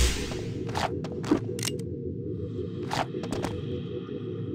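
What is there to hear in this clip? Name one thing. Footsteps clack on a hard floor.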